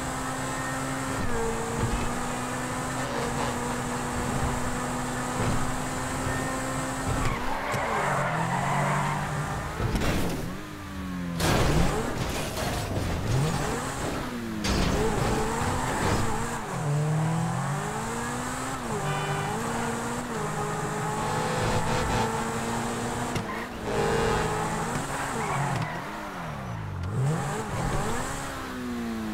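A car engine roars and revs up and down, rising and falling in pitch.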